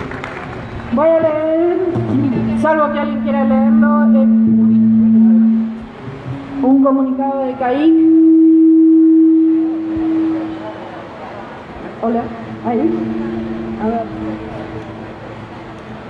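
A woman sings into a microphone, heard through a loudspeaker outdoors.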